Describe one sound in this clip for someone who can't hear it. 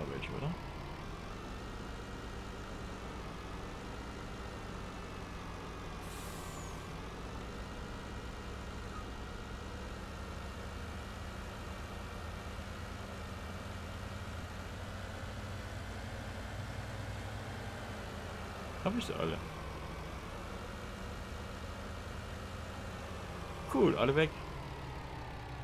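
A truck engine drones steadily, its pitch rising and falling gently.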